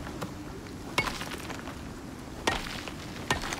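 A pickaxe strikes rock with sharp knocks.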